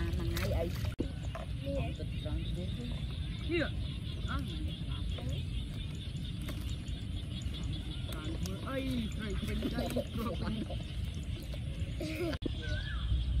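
Water splashes and trickles around young boys wading.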